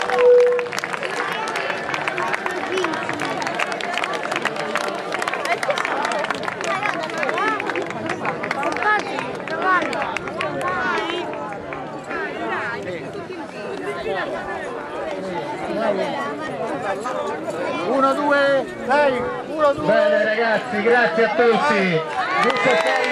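A crowd of men and women talk and shout at once outdoors.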